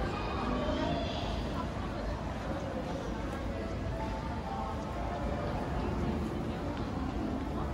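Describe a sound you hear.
Water bubbles and churns up from below the surface.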